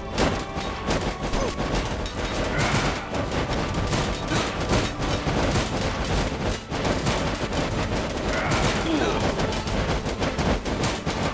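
Swords clash and clang rapidly in a fierce battle.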